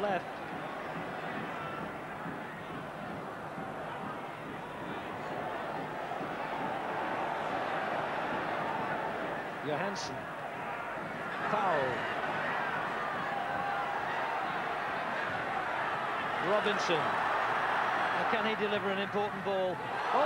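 A large stadium crowd murmurs and cheers throughout.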